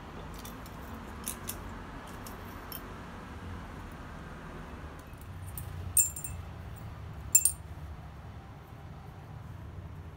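Small metal parts clink and scrape against a vise.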